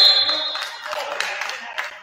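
A man shouts from the sideline in a large echoing gym.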